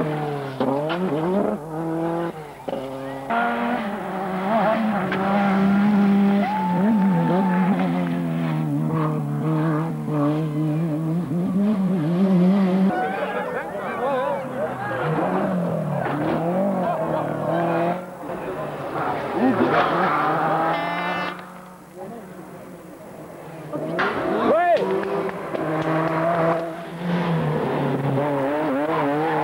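Rally car engines roar and rev hard as cars race past.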